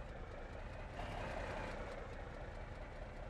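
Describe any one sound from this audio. Truck tyres scrape and bump over a kerb.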